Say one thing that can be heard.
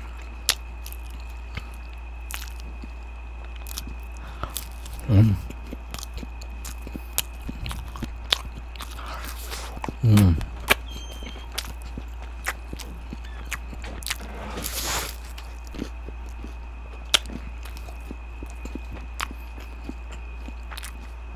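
A man chews crispy food close to a microphone.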